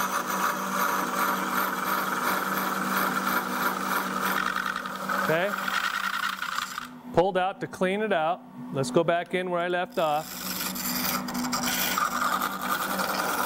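An electric lathe motor hums steadily.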